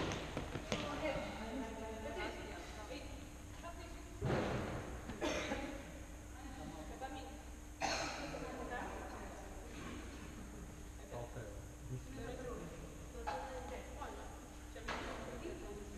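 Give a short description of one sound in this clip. Players shout to each other across an echoing hall.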